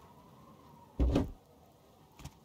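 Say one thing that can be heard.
A heavy box lid thuds shut.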